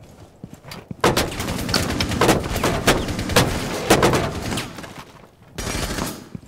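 Rapid gunshots crack close by.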